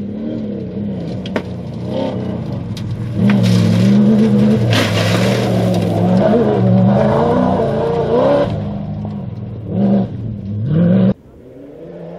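Gravel sprays and crunches under a rally car's tyres.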